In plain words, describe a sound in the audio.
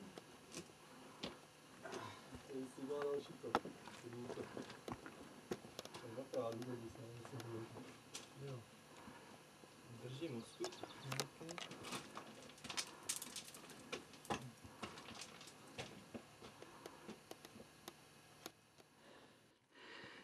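Boots scrape and knock on rock as climbers scramble up.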